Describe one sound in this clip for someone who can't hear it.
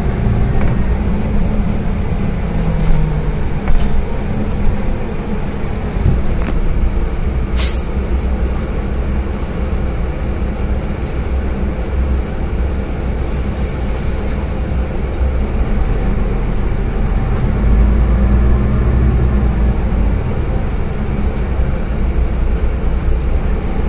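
The bus body rattles over the road.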